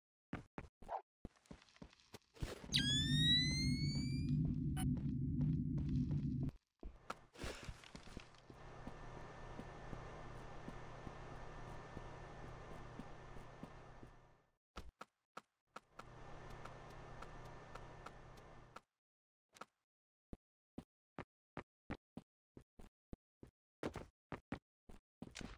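Footsteps tap softly on a hard surface.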